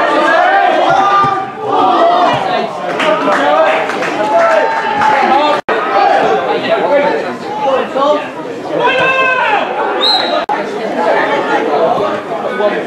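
Men shout and call out to one another across an open outdoor field.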